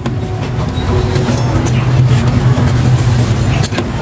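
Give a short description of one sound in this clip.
A cloth rubs against a circuit board.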